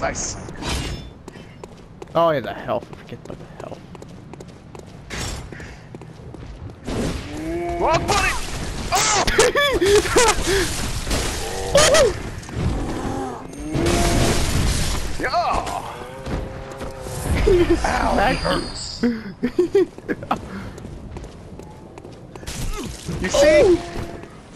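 Footsteps run over cobblestones.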